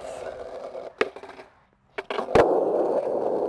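A skateboard tail snaps on concrete.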